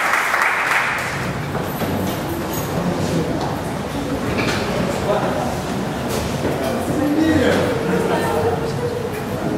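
Many men and women chat at once in a room.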